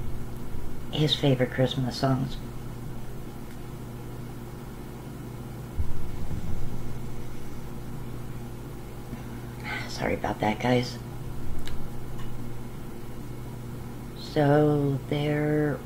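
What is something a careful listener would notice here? A middle-aged woman speaks calmly and close to the microphone, in short phrases with pauses.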